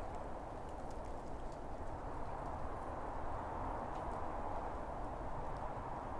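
Wind rustles the leaves of trees and grass.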